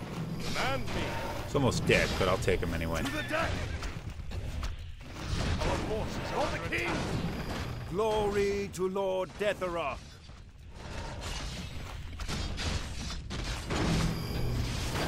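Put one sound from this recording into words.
Weapons clash and clang in a battle.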